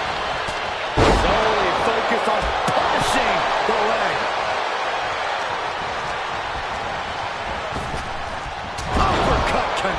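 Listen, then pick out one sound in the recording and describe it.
Heavy bodies slam down hard on a wrestling ring.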